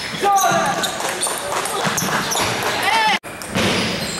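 Shoes squeak on a hard gym floor.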